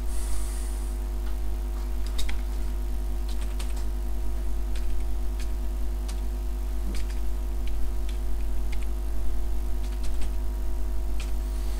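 Keys clatter on a computer keyboard in short bursts.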